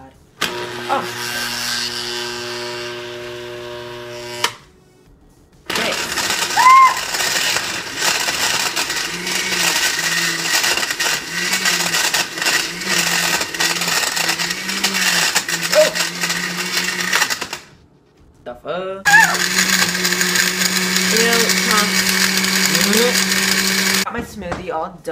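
A blender whirs loudly, stopping and starting several times.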